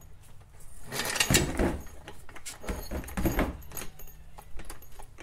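Metal clicks softly as a hand handles a brake part.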